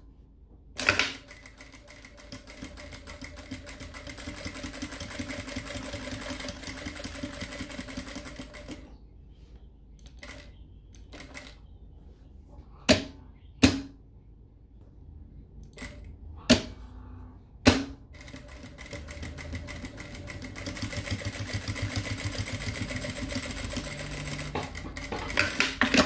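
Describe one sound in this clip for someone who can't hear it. A sewing machine whirs steadily as it stitches fabric.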